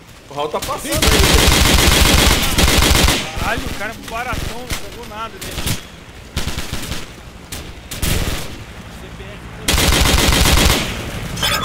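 Automatic rifle fire rattles in rapid bursts.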